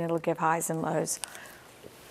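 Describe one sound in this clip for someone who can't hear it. A middle-aged woman speaks calmly into a clip-on microphone.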